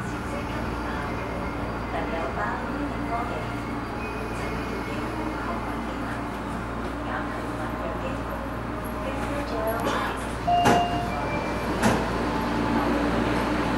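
A train rumbles steadily as it slows to a stop.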